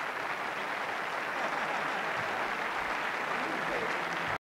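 A saxophone plays softly.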